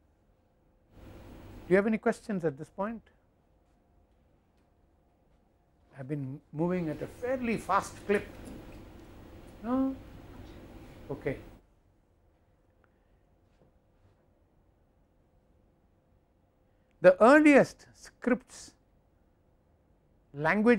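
An elderly man speaks calmly into a clip-on microphone, pausing between phrases.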